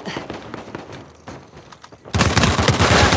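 Footsteps patter on a wooden roof.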